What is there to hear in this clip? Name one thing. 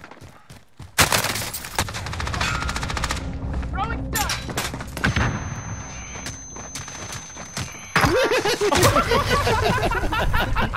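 Loud gunshots fire in rapid bursts.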